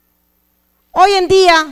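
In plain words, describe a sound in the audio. A woman calls out loudly and emotionally through a microphone.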